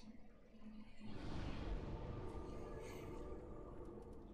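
A deep whooshing rush swells and lingers.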